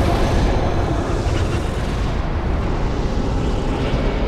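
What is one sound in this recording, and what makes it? A magical blast crackles and roars.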